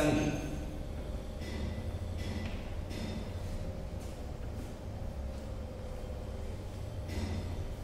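A duster rubs across a whiteboard.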